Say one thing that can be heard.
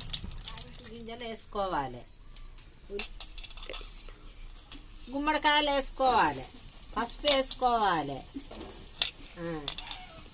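An older woman speaks with animation nearby.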